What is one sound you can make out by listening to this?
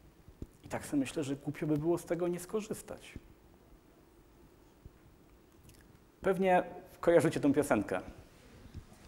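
A man speaks calmly through a clip-on microphone.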